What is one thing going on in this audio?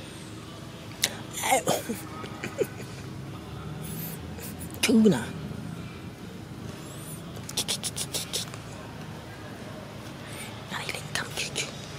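A young monkey squeaks close by.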